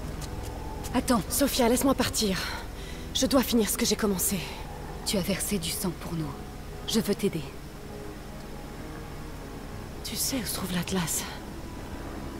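A young woman speaks calmly and urgently, close by.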